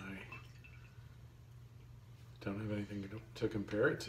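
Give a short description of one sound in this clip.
Beer pours from a bottle into a glass.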